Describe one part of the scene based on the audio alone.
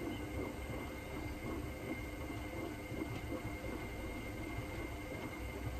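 A washing machine drum turns with a steady low rumble.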